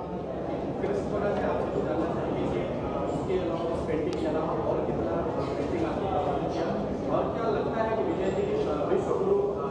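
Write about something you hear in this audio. A middle-aged man speaks calmly into microphones.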